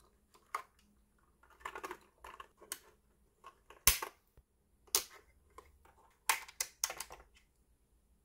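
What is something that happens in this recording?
A plastic keyboard is handled with light knocks.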